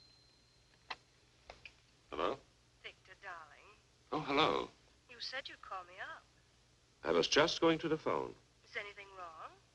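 A man speaks quietly into a telephone close by.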